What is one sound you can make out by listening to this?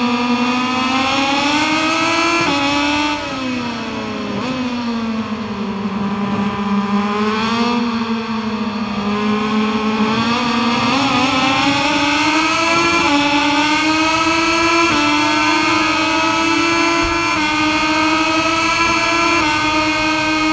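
A racing motorcycle engine roars close by, dropping in pitch when slowing for corners and rising as it speeds up through the gears.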